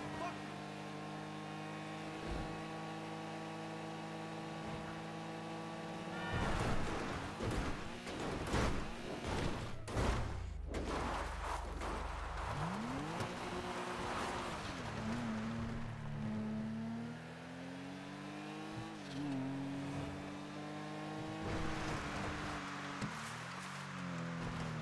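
A car engine hums steadily at speed, then revs up and down.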